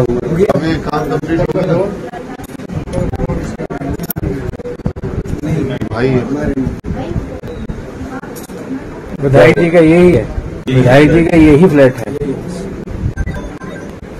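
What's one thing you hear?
Several men talk close by in an agitated way.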